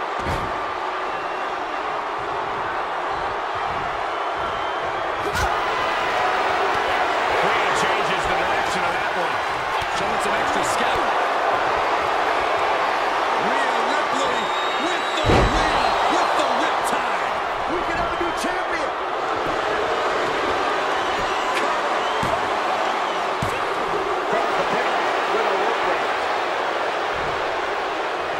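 A large crowd cheers and chants steadily in a big echoing arena.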